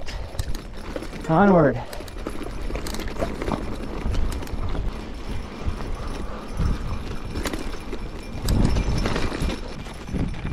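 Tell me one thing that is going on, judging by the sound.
Bicycle tyres crunch and rattle over a rough dirt trail.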